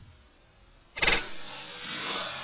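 A rifle fires a single loud shot that echoes briefly.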